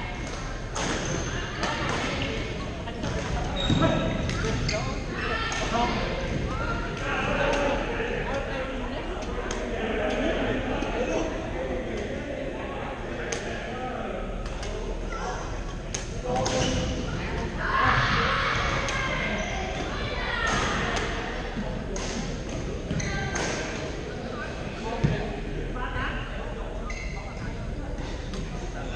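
Men call out and chatter across the courts.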